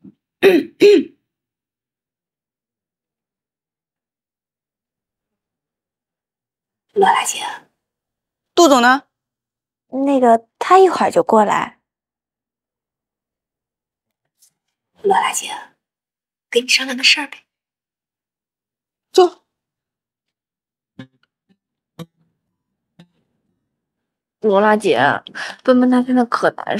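Another young woman answers calmly, close by.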